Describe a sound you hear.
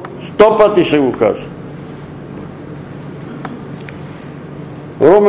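An elderly man reads aloud calmly.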